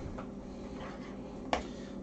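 A whisk scrapes and taps against a bowl of batter.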